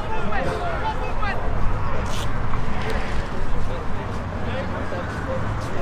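Young men shout to each other in the distance.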